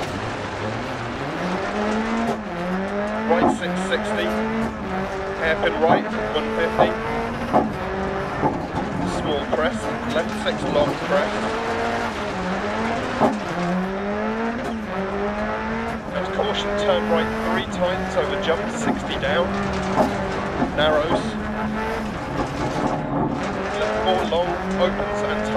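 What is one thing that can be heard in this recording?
Gravel crackles and pops under the tyres.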